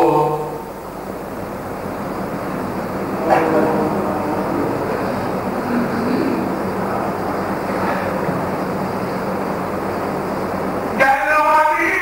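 A man sobs near a microphone.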